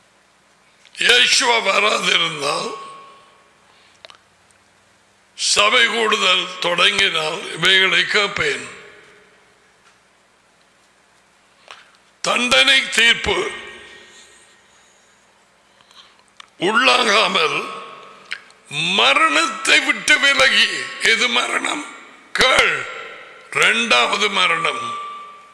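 An elderly man speaks emphatically into a close microphone, in bursts with pauses.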